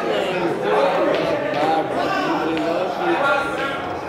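Pool balls click against each other.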